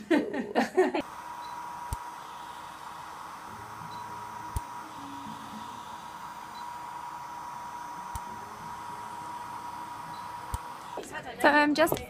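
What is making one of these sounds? A device hums steadily with a faint whine.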